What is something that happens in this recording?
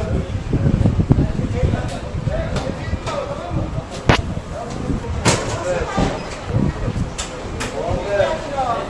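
Men talk with one another nearby in agitated voices.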